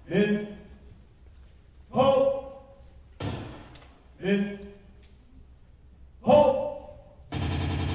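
A second woman answers with lines, heard from across a large echoing hall.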